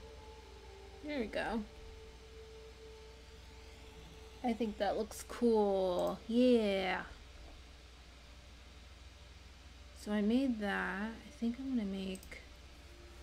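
A young woman speaks with animation into a close microphone, in short bursts.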